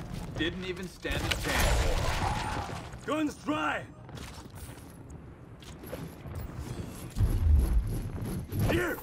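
A rifle fires loud bursts of gunshots.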